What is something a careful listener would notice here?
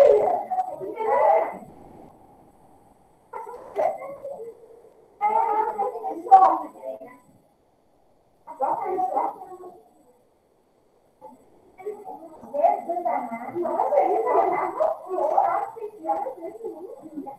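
A woman speaks calmly into a microphone, heard as if through an online call, with short pauses.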